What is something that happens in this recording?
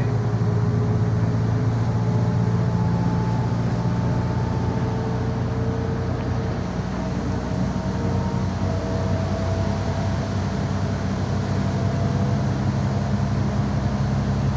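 Windscreen wipers sweep back and forth.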